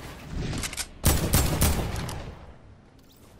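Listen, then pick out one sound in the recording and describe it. A gun fires several loud shots.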